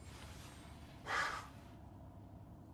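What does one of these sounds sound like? A man speaks briefly with a slight exclamation.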